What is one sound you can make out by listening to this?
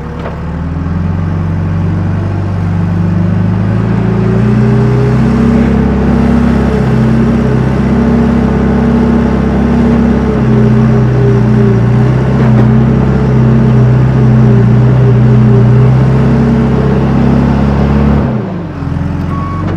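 A diesel engine rumbles loudly close by, its pitch rising and falling.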